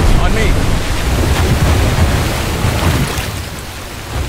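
Water pours down heavily and splashes.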